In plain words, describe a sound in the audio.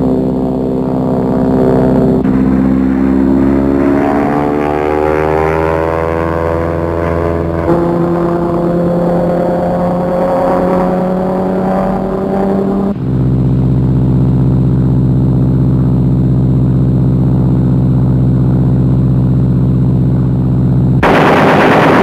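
A propeller aircraft engine drones loudly, its pitch rising and falling.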